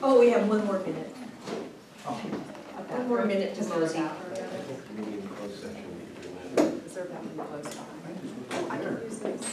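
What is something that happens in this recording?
A man speaks nearby in a calm voice, in a room with some echo.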